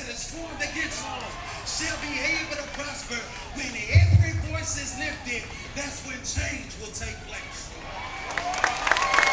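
A crowd murmurs and talks outdoors.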